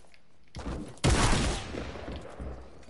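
A game shield potion gulps and fizzes.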